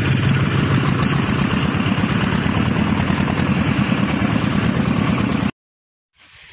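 A motorbike engine roars steadily.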